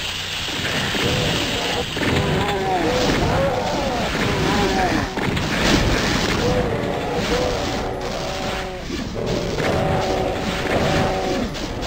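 Gunshots blast repeatedly.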